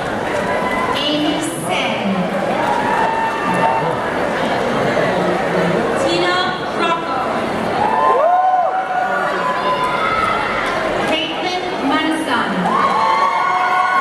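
Audience members cheer and whoop loudly.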